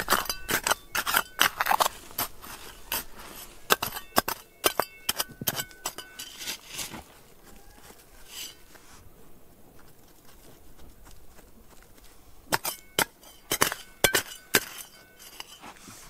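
A metal trowel scrapes and clinks against loose stones.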